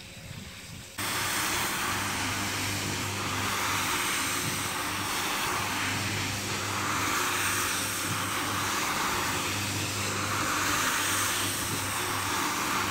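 A floor scrubbing machine hums loudly and steadily as its brush scrubs a rug.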